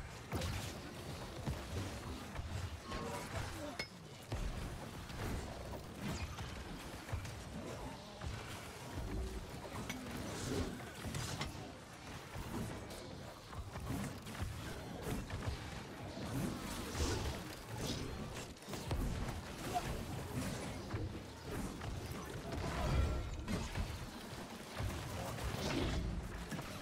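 Spell blasts and magic impacts crackle and boom in a game battle.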